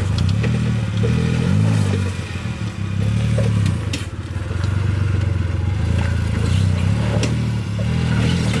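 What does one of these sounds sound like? Tyres crunch and scrape over loose sand and dirt.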